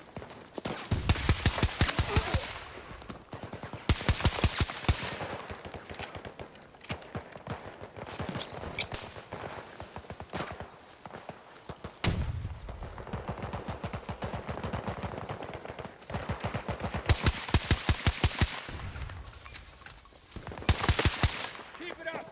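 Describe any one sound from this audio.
An automatic rifle fires in rapid bursts, close by.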